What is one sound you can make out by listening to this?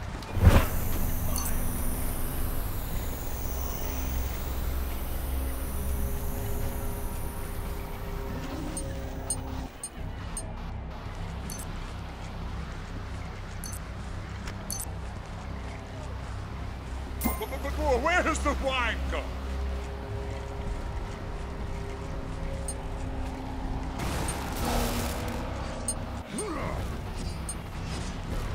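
Soft game background music plays steadily.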